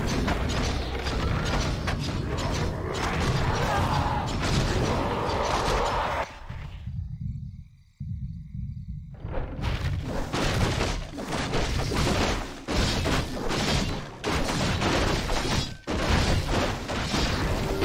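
Spell effects crackle and boom as game figures battle.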